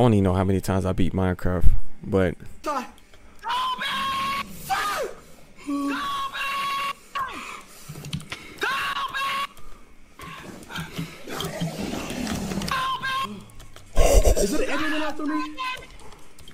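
A young man shouts and laughs loudly.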